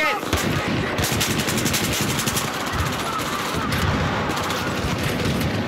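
An assault rifle fires rapid bursts.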